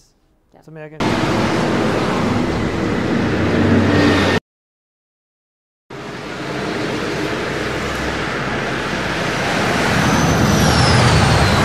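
A spaceship roars as it rushes along at great speed.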